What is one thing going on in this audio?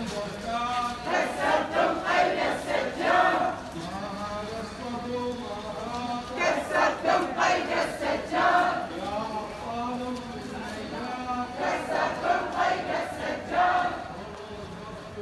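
A crowd of men and women chants loudly in rhythmic call and response outdoors.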